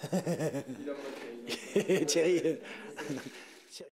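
A middle-aged man laughs into a microphone.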